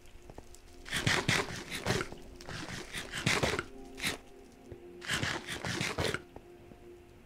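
A pickaxe breaks stone blocks with quick crunching thuds.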